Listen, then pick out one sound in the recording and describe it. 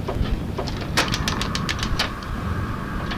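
A gas lighter clicks several times.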